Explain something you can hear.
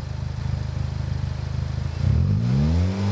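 A car engine idles with a deep exhaust rumble.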